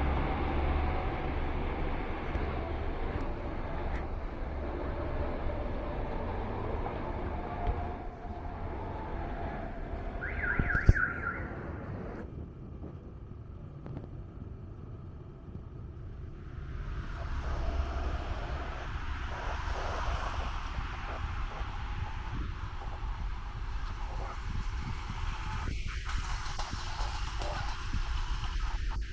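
Cars drive past on a city street.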